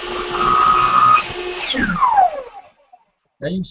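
A power saw whines and winds down to a stop.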